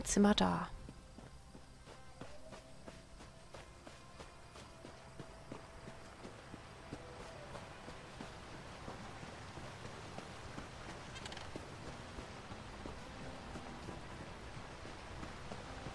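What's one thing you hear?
Footsteps patter quickly over ground and stone.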